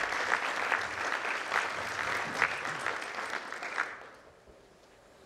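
An audience applauds in a large hall, then the clapping dies away.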